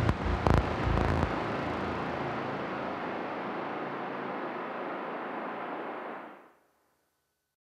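A modular synthesizer plays a dense, droning electronic texture that fades out.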